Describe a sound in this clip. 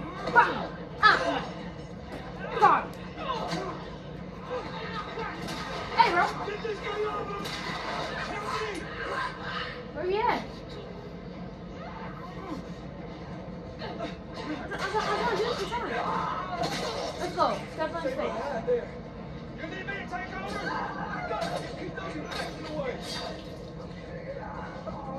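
Characters grunt and shout from a television speaker.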